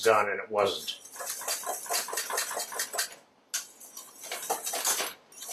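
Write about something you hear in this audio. A spoon stirs and scrapes inside a metal pot.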